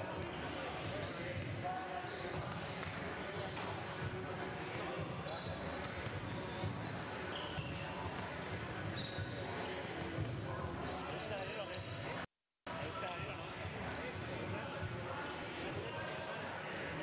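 A ball thuds as players kick it in an echoing hall.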